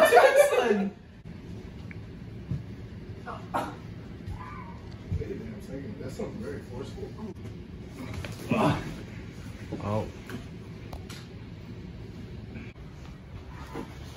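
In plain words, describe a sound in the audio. Bodies thud and scuffle on a floor.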